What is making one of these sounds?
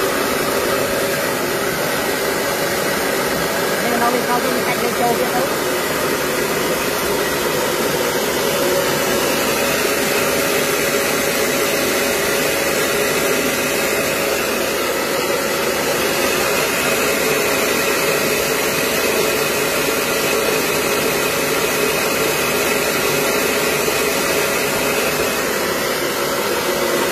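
A machine motor hums and rattles steadily.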